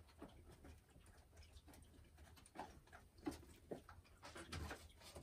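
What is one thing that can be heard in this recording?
A hen clucks softly close by.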